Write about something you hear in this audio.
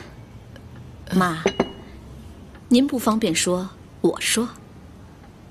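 An elderly woman speaks calmly.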